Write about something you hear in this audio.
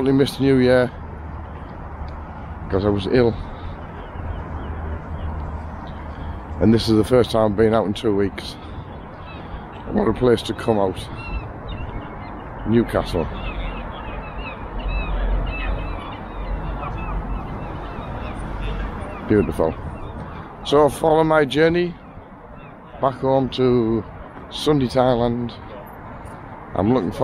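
A middle-aged man talks calmly and close to the microphone.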